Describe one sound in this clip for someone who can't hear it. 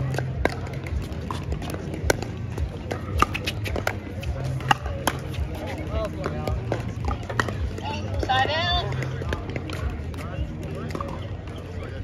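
Paddles pop sharply against a plastic ball in a quick rally.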